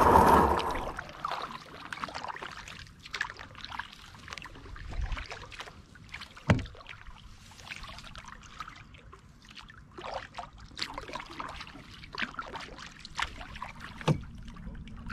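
A paddle dips and splashes softly in calm water.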